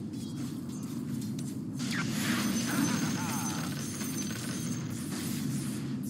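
Fantasy battle sound effects clash and crackle as spells are cast.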